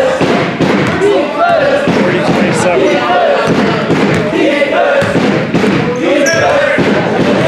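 A crowd of spectators shouts and chatters in a large echoing gym.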